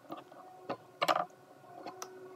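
A knife is set down on a wooden board with a clack.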